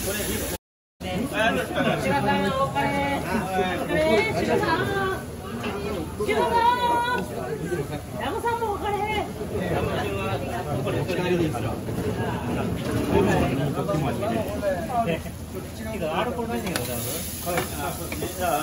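An elderly man talks casually nearby.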